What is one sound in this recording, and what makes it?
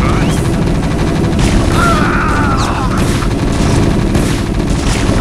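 Gunfire and explosions crackle in a battle.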